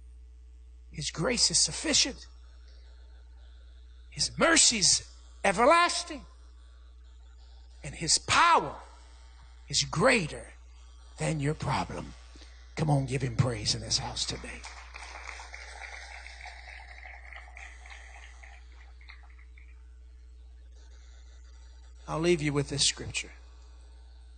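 A man speaks into a microphone in short, emphatic bursts with long pauses, his voice echoing through a large hall.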